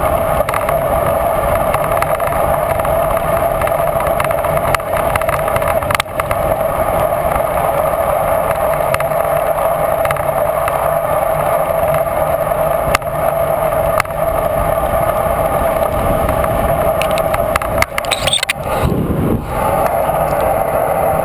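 Wind roars loudly past a moving bicycle.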